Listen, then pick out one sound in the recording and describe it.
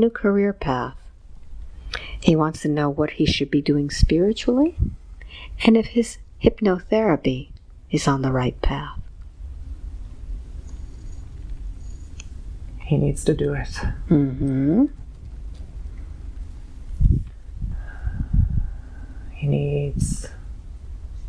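A young man speaks softly and breathily close by.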